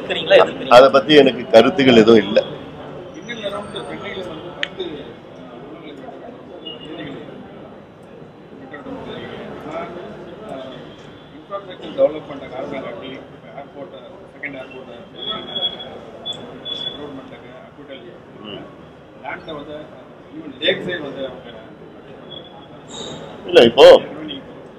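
A man speaks calmly into microphones at close range.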